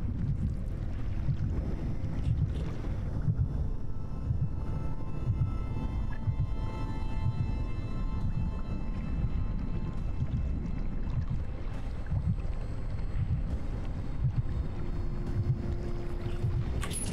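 A low, dark rumbling drone plays steadily.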